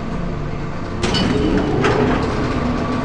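A heavy metal lever clanks down.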